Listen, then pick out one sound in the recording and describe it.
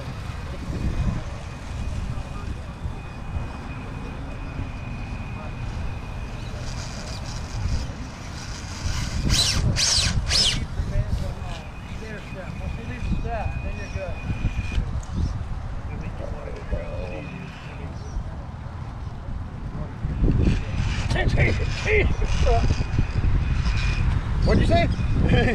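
A small electric motor whines steadily.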